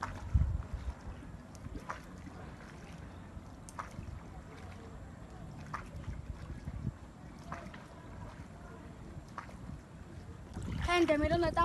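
Oars splash in calm water.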